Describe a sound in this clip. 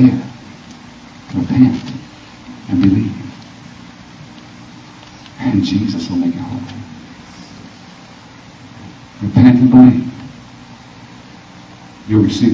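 A man sings into a microphone in short phrases, heard through a loudspeaker in an echoing room.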